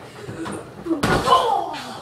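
A person lands heavily on a mattress with a soft thud.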